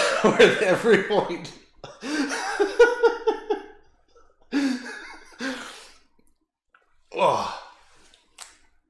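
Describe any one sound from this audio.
A man laughs loudly and excitedly close to a microphone.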